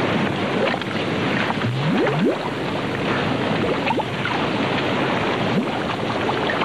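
Thick mud bubbles and plops with gurgling sounds.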